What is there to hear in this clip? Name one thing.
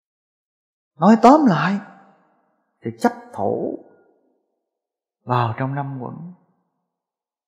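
A man speaks calmly and slowly in short phrases, close by.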